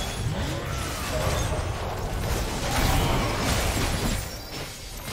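Video game spells whoosh, crackle and burst during a battle.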